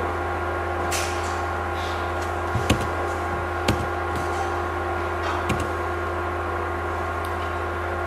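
A projector hums steadily.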